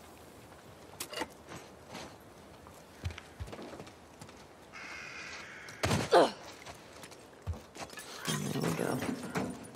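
Footsteps thud and scrape as a person climbs and walks.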